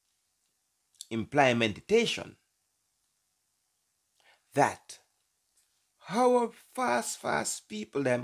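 A middle-aged man speaks calmly and close to a microphone, in short bursts with pauses.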